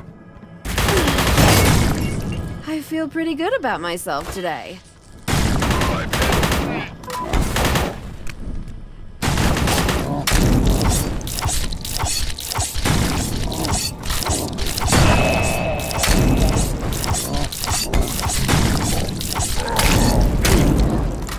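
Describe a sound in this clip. Wet, squelching splatters burst as enemies explode.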